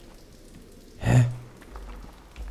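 A heavy door bangs open.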